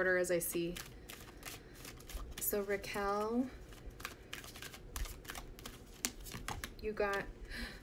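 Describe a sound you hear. Cards shuffle and flick in a woman's hands.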